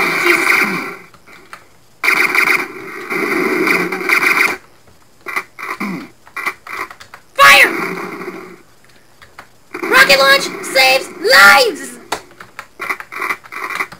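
Gunfire from a video game rifle rattles in rapid bursts.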